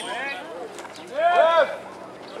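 An adult man shouts a call loudly outdoors.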